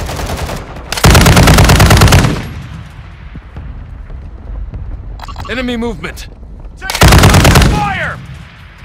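A machine gun fires in loud rapid bursts.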